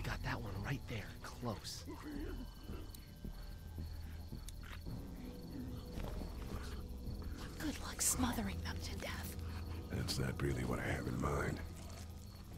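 A man speaks quietly and urgently, close by.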